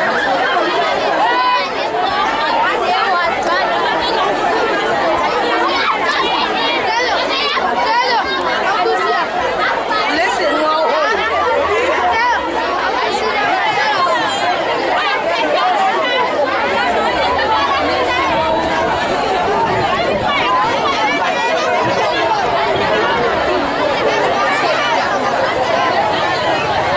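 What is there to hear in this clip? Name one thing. A large crowd of young people shouts and chants loudly outdoors.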